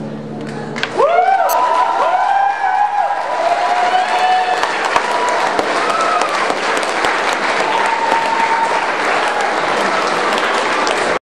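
An audience claps and cheers loudly in a large echoing hall.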